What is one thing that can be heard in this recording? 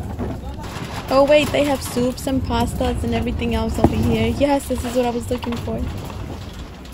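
A woman speaks close by.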